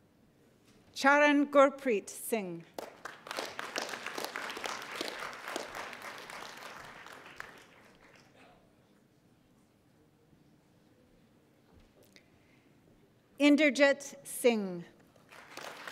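A woman announces a name through a microphone in a large hall.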